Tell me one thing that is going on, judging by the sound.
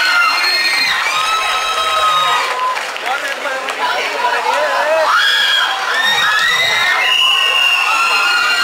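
A rock band plays loudly on a stage in a large venue.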